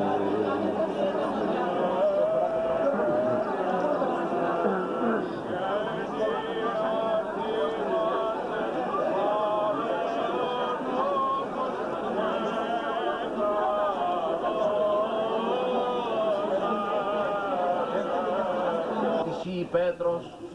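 Several men chant together in a steady, melodic drone.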